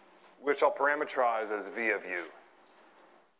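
A man speaks clearly, with a slight echo.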